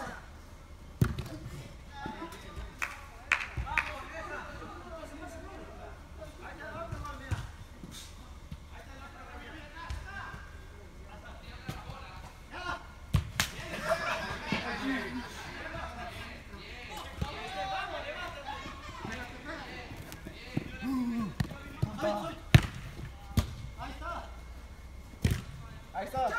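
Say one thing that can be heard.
Players kick a football with sharp thuds in a large echoing hall.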